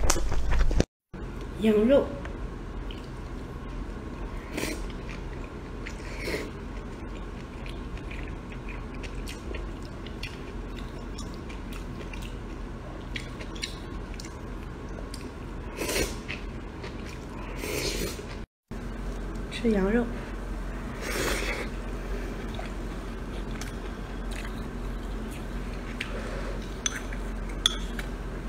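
A young woman chews food noisily.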